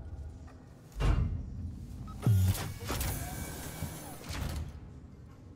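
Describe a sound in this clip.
A heavy metal door slides open with a mechanical rumble.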